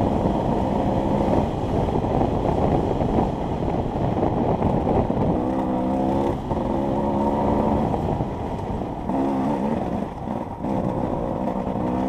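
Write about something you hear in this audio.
Wind rushes past.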